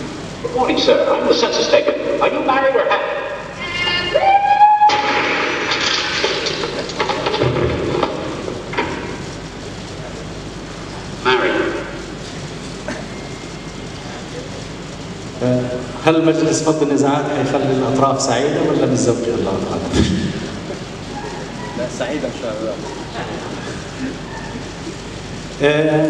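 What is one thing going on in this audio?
A man speaks calmly into a microphone over loudspeakers in a large echoing hall.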